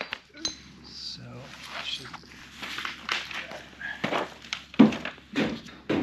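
Small metal parts clink as they are handled.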